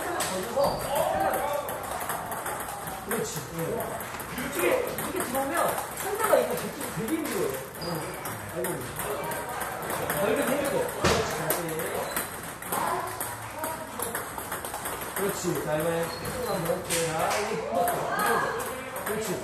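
A table tennis ball is struck with a paddle.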